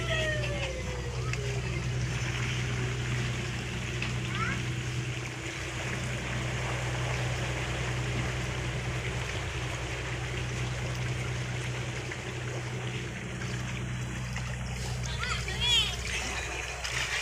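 Water churns and splashes steadily as a mass of fish swarms near the surface.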